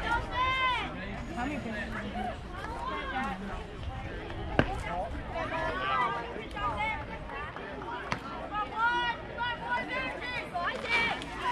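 A crowd of spectators chatters and cheers outdoors at a distance.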